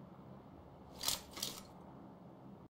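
A rifle clicks and rattles as it is picked up.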